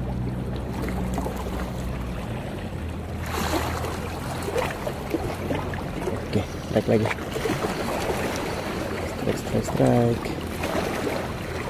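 Small waves lap gently against rocks.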